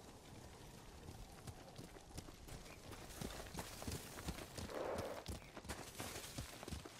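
Horses' hooves thud at a gallop on snowy ground.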